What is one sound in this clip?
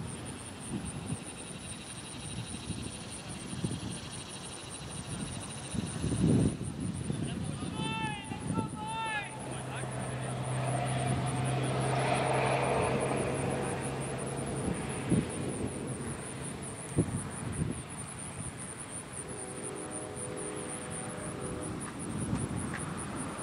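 Wind buffets across an open field outdoors.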